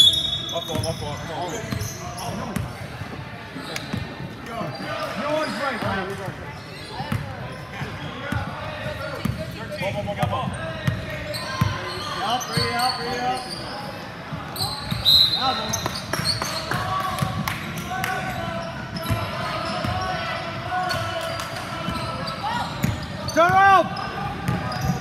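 Young players shout and call out across the gym.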